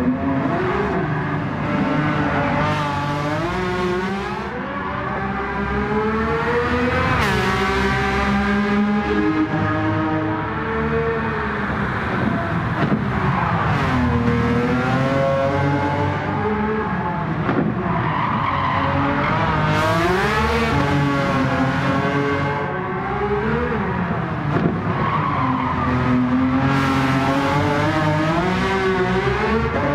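A sports car engine roars and revs up and down as the car races past.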